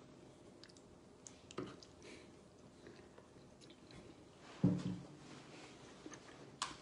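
A man chews food close by.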